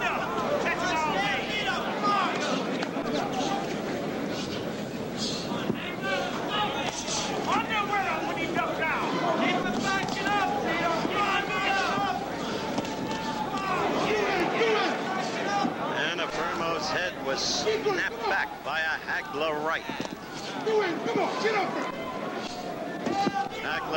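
A large crowd murmurs and cheers in a big hall.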